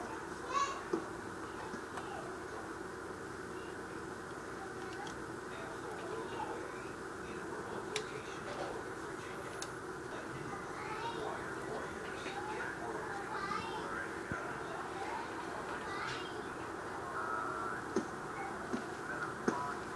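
Punches land with dull thuds in a video game fight, heard from a television speaker.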